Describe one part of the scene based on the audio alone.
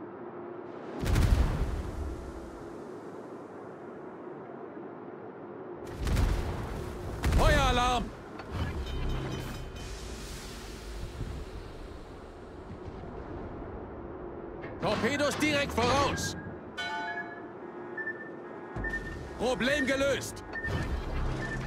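Heavy guns fire with deep, loud booms.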